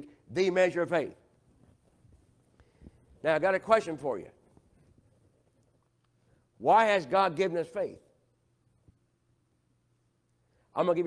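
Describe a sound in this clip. An elderly man speaks through a microphone with emphasis, in short bursts with pauses.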